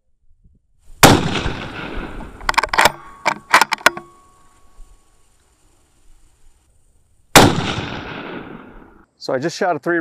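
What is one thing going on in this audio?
A rifle fires loud shots that echo and roll away outdoors.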